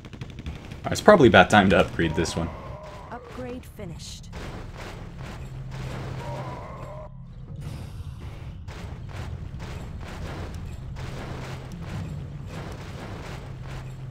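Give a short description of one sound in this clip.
Sharp game hits and blasts crackle as towers attack.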